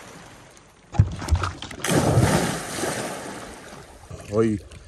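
Water splashes loudly as a man jumps in.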